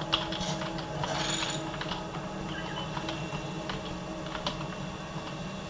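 Computer keys click and clatter under quick typing.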